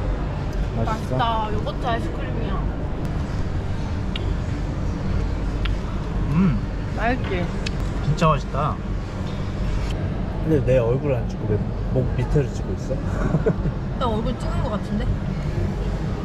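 A young woman speaks casually close by.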